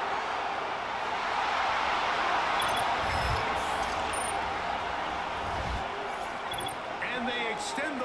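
A large crowd roars and cheers in a stadium.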